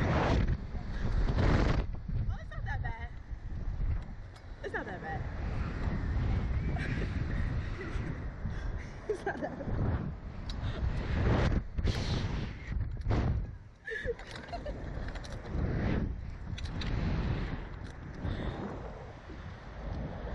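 A young woman screams and laughs close by.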